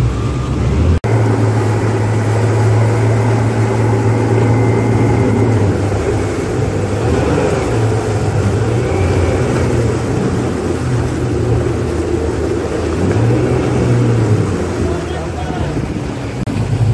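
Churning water rushes and splashes behind a boat.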